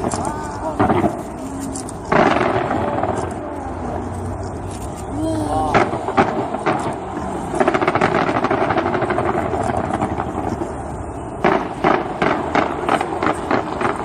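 Fireworks bang and crackle loudly overhead.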